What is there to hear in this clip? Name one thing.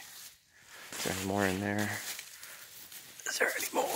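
Leafy plants rustle as a hand pushes through them.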